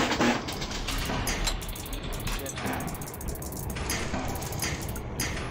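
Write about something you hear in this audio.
Metal tiles click and clack as they flip over in quick succession.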